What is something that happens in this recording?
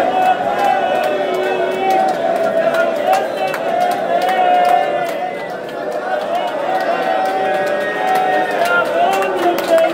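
Men clap their hands in rhythm.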